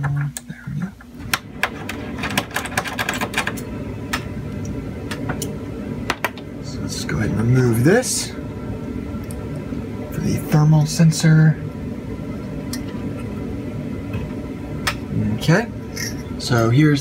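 Small metal parts click and scrape.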